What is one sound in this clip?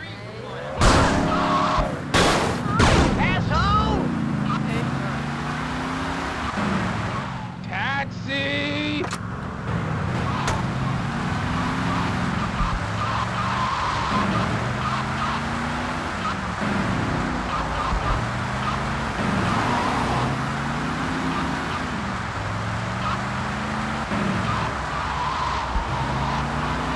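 A car engine revs up and down repeatedly as it drives.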